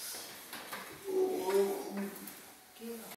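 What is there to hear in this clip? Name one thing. A man speaks briefly in an echoing hall.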